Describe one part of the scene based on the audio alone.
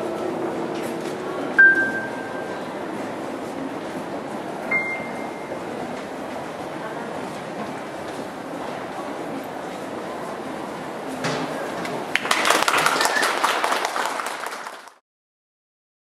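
An electric keyboard plays through a loudspeaker.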